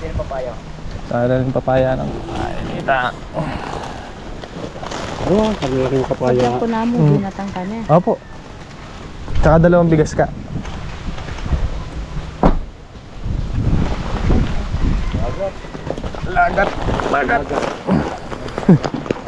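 A young man talks nearby in a calm voice.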